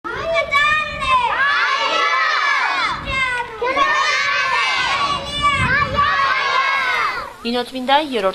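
A group of young children sing loudly together.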